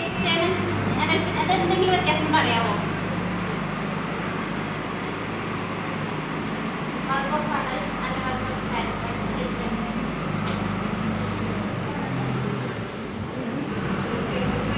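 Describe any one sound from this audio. A woman speaks with animation to a group, close by.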